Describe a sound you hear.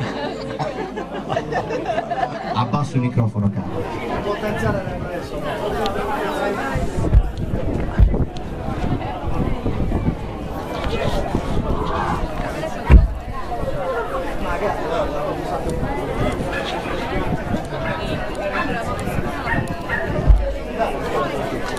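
A live rock band plays loudly through amplifiers.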